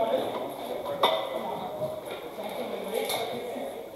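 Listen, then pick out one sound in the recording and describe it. Metal armour clanks sharply.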